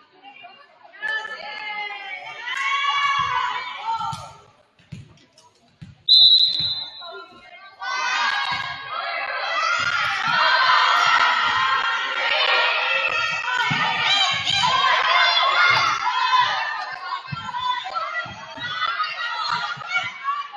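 Young women shout and cheer loudly in an echoing gym.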